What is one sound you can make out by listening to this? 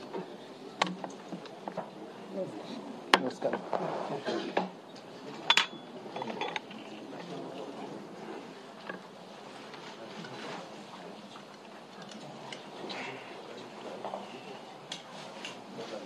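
A crowd of people murmurs and chatters in a room.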